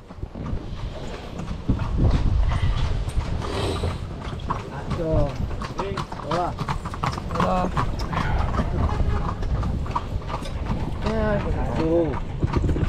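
Horse hooves clop on the road.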